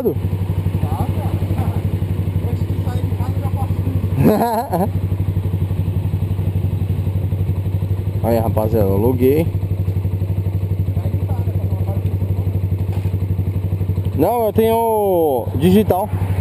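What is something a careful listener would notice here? A motorcycle engine idles with a steady, low, throbbing rumble close by.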